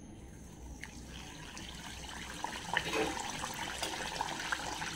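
Batter sizzles and crackles in hot oil.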